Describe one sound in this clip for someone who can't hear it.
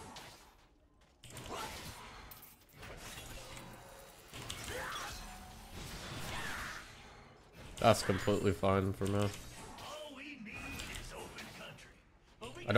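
Fantasy battle sound effects clash and crackle in quick bursts.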